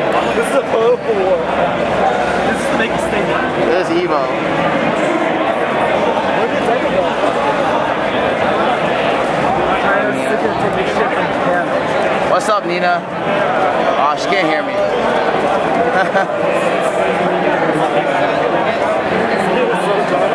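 A crowd of people chatter all around in a large, busy room.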